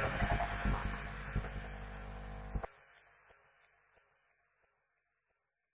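An electric guitar plays loudly through an amplifier, then its sound rings out and fades.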